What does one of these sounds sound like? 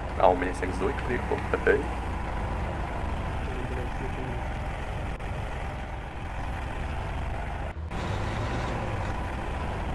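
A vehicle engine rumbles low and steadily.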